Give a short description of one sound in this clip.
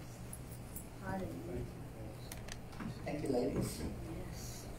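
A child speaks through a microphone in an echoing room.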